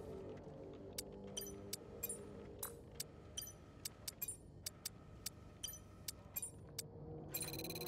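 Short electronic menu clicks tick in quick succession.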